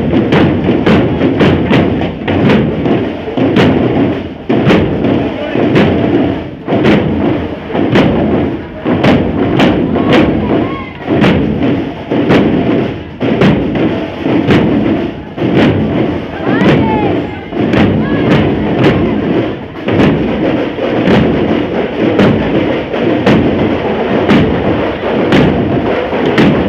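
A marching band's bass drums pound in a loud, steady rhythm outdoors.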